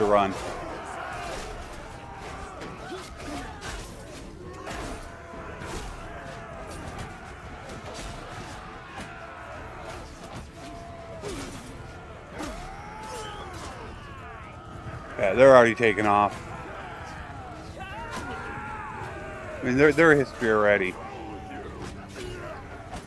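A large crowd of soldiers shouts and yells in battle.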